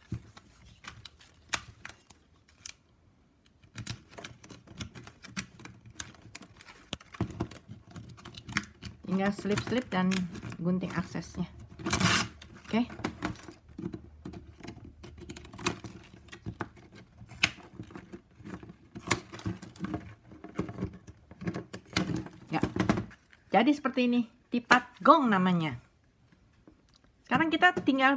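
Stiff plastic strapping strips rustle and click as they are woven by hand.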